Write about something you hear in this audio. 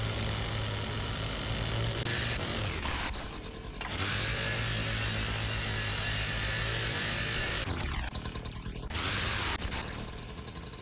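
A chainsaw engine runs with a steady drone.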